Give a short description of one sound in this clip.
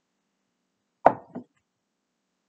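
A glass knocks down onto a table.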